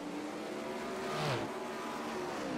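A racing car roars past up close, its engine dropping in pitch.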